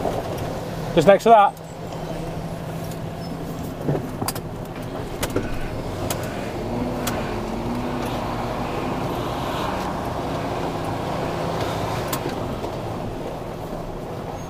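A man talks to the listener in a close, casual voice.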